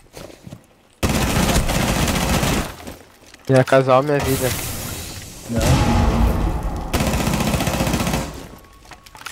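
A rifle fires rapid bursts close by.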